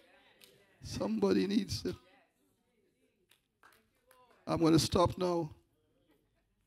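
An elderly man preaches with animation through a microphone, in short bursts with pauses.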